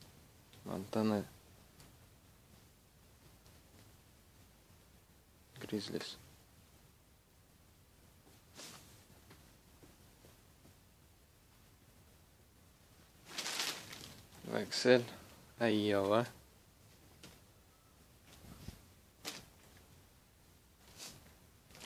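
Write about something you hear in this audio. Fabric rustles as hands handle clothing.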